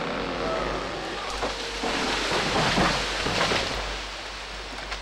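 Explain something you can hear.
A large tree cracks and crashes down through branches.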